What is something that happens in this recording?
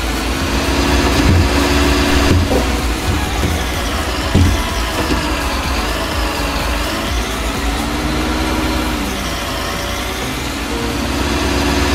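A diesel engine drones steadily.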